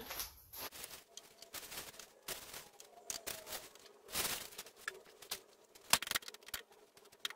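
Dry powder pours and rustles into a tray.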